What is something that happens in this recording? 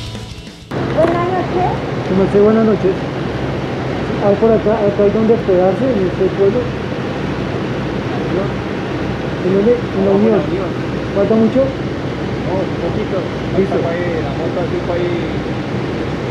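A man talks over the engine, close by.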